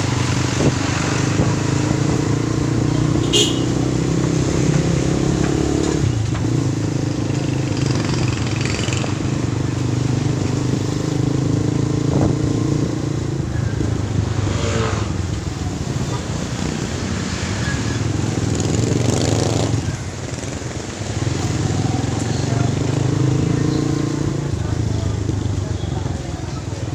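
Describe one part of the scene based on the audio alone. A motorcycle engine runs steadily up close, its pitch rising and falling.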